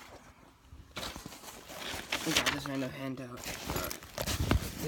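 Fabric rustles and bumps against the phone.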